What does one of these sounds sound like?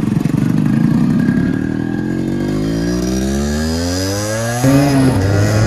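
A motorcycle engine revs up, rising steadily in pitch.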